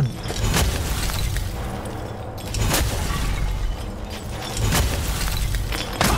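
Crystals shatter and break apart.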